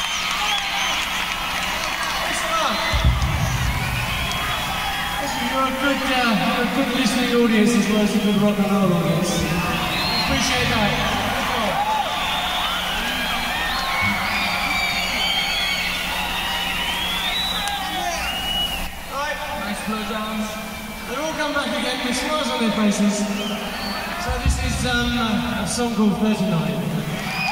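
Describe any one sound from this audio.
A rock band plays loudly.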